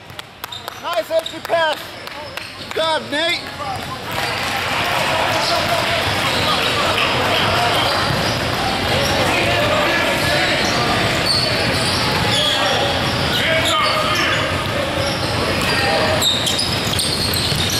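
Young men call out to each other in a large echoing gym.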